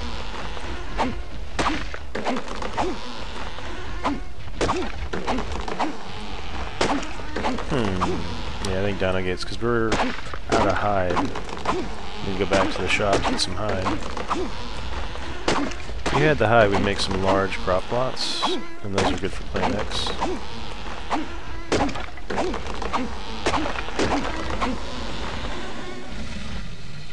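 A hatchet chops repeatedly into a tree trunk with dull thuds.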